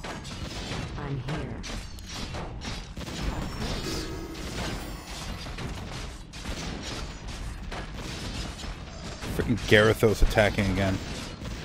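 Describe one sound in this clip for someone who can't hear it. Weapons clash and strike over and over.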